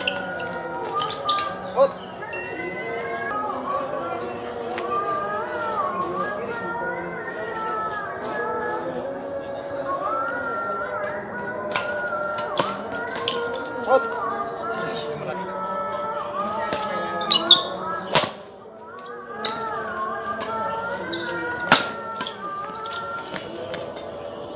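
Rackets smack a shuttlecock back and forth.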